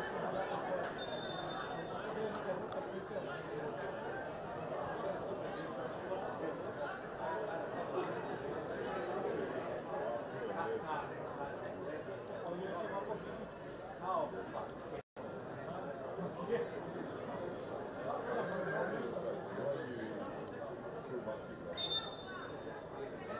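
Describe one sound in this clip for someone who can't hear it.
A referee's whistle blows short, shrill blasts.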